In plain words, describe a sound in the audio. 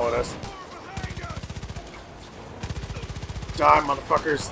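A gun fires in rapid automatic bursts.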